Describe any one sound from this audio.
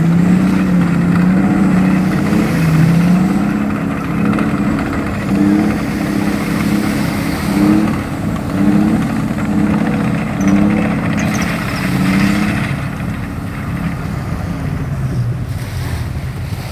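Heavy vehicle engines rumble loudly close by.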